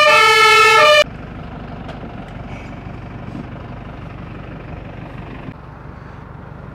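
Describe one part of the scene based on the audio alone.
A truck engine rumbles nearby.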